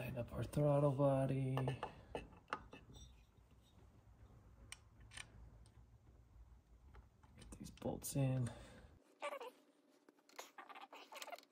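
Metal parts click and clink lightly as they are fitted together by hand.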